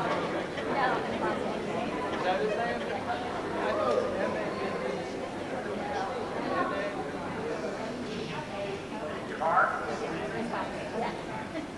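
A crowd of people chatters throughout in a large echoing hall.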